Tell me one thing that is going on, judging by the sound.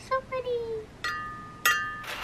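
Glasses clink together with a ringing tone.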